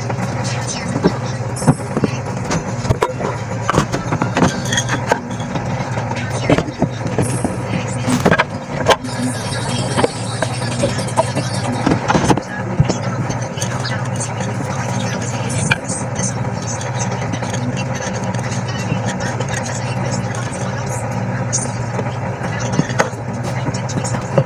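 Plastic toys knock and clatter nearby.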